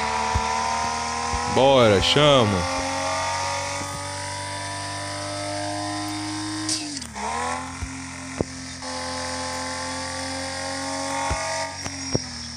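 A sports car engine drones at high revs.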